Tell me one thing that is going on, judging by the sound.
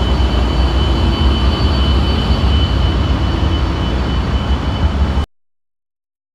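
A high steady whine hums from a locomotive.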